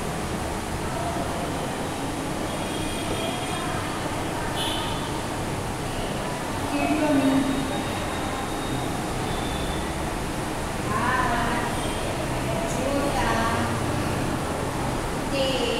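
A woman speaks calmly, close by.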